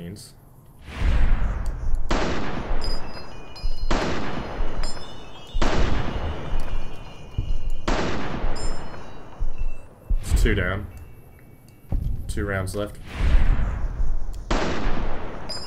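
A rifle fires loud shots that boom and echo away.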